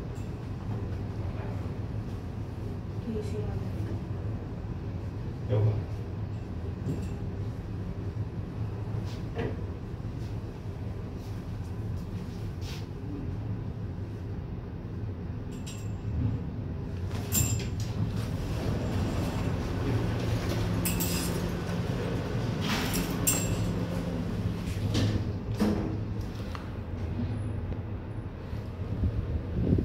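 An elevator hums with a steady low drone as it moves.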